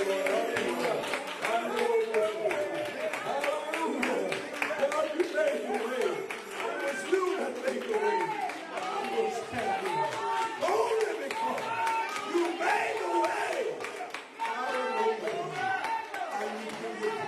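A man claps his hands steadily.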